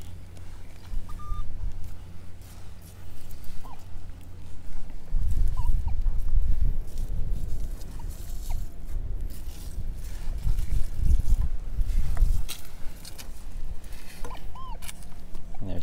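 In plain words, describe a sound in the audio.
A metal detector gives short electronic beeps.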